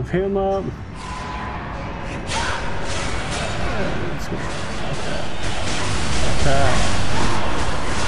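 Game combat sounds clash and crackle with hits and blasts.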